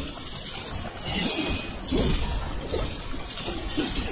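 Swords clash in quick strikes.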